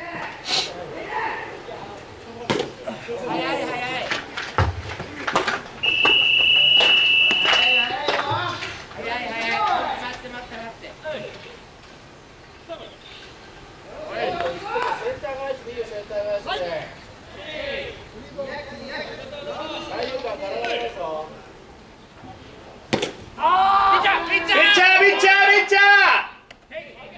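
Young men shout and chant from across an open field.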